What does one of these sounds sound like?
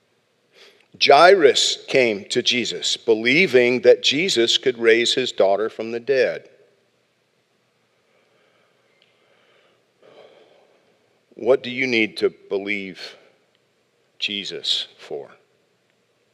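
A middle-aged man speaks calmly through a microphone, with pauses.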